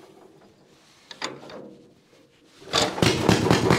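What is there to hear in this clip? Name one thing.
A man turns a hand crank on an old engine.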